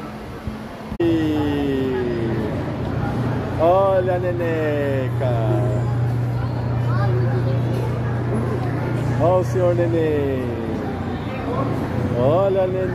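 A child's ride plays electronic music with sliding notes.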